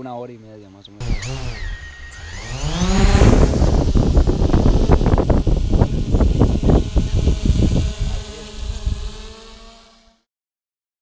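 A drone's motors whir loudly close by.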